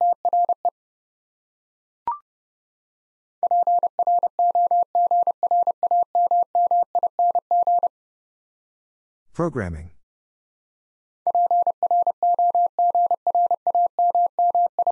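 Morse code beeps tap out in quick bursts of a steady tone.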